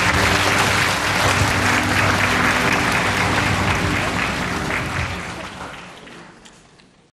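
An audience applauds loudly in a large hall, then the clapping dies away.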